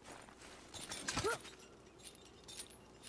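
A metal chain rattles as it is climbed.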